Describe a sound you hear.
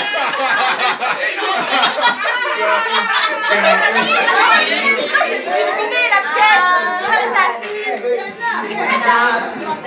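A crowd of men and women talk and cheer loudly close by.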